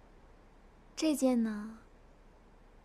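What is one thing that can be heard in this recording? A young woman exclaims in a high voice.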